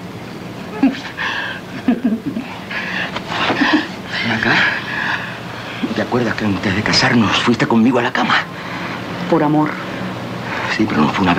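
A man speaks in a low, intense voice close by.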